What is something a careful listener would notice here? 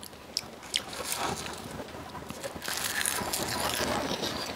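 Crisp seaweed crinkles in a hand.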